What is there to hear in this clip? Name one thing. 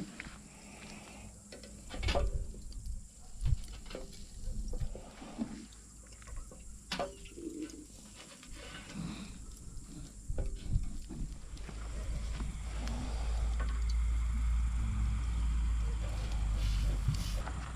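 Glowing charcoal crackles and hisses faintly.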